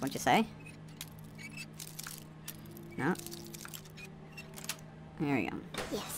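A metal pick scrapes and clicks inside a lock.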